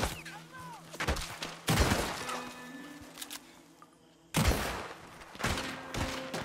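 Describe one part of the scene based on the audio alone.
Loud gunshots ring out and echo outdoors.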